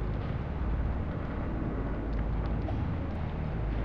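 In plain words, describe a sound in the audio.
A soft interface click sounds once.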